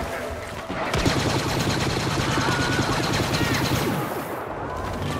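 A blaster rifle fires rapid laser shots.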